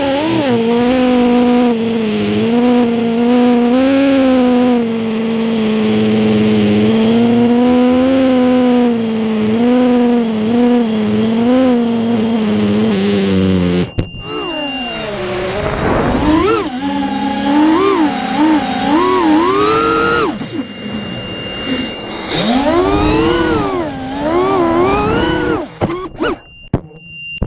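A small drone's motors whine loudly, rising and falling in pitch as it flies.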